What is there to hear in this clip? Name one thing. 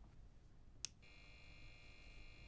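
Fluorescent lights hum steadily after switching on.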